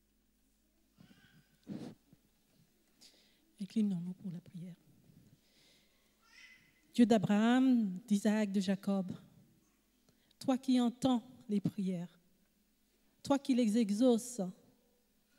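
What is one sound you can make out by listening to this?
An elderly woman speaks slowly into a microphone over a loudspeaker, in a large echoing hall.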